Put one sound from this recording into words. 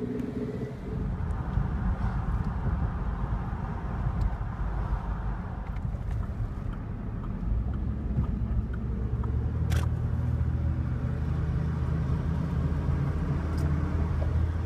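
A car engine hums steadily from inside a moving car.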